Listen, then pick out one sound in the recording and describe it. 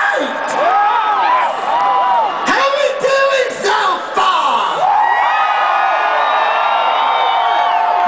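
A crowd cheers and shouts.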